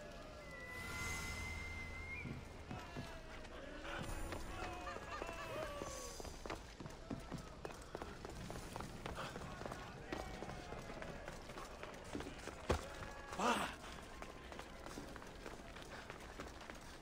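Footsteps run quickly over stone paving.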